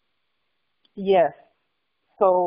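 A woman speaks close to a microphone, as over an online call.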